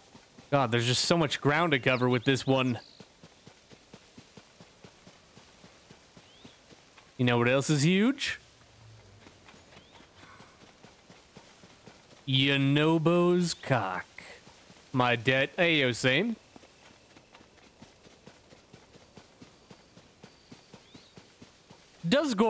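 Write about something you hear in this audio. Quick, light footsteps patter on grass.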